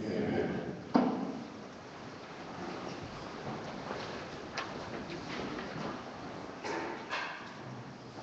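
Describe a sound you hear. People sit down on wooden pews with knocks and shuffling.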